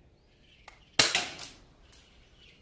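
A pistol fires a single loud shot that rings out briefly outdoors.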